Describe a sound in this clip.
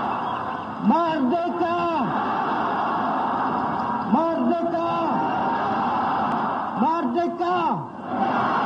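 A man shouts loudly three times.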